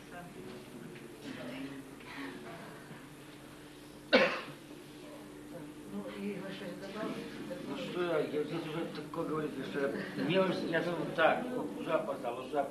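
A woman talks cheerfully close by.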